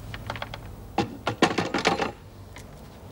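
A telephone handset clatters as it is hung up.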